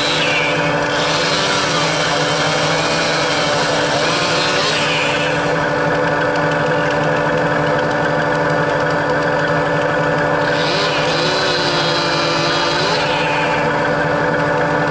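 A machine's engine hums steadily close by.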